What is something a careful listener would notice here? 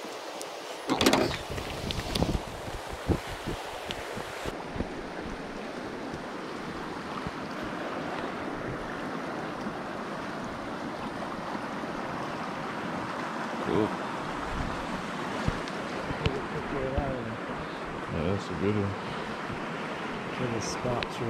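A shallow stream ripples and gurgles over stones close by.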